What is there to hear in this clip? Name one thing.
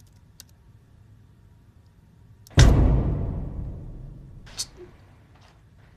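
A young woman types on a laptop keyboard.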